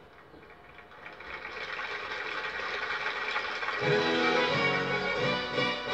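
A crowd cheers and applauds through a television loudspeaker.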